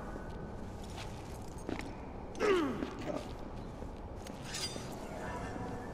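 A shovel strikes and scrapes on pavement.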